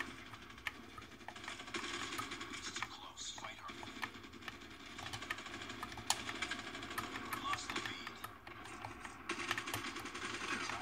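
Buttons and thumbsticks on a game controller click and tap.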